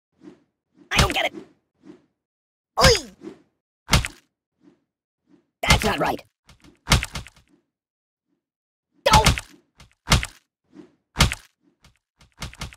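Cartoon game sound effects thud as soft objects strike a ragdoll.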